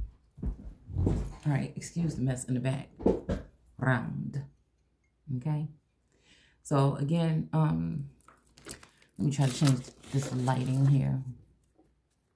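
A woman talks close by, casually and with animation.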